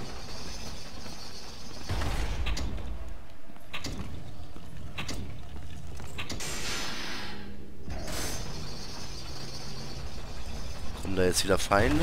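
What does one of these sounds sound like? Heavy metal chains clank and rattle.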